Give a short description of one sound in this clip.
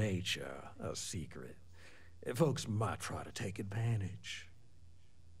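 A middle-aged man speaks calmly and slyly, close by.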